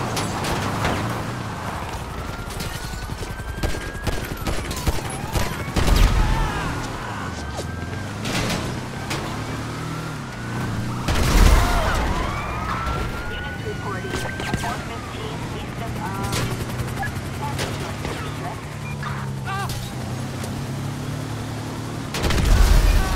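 An engine roars steadily as an off-road buggy drives fast.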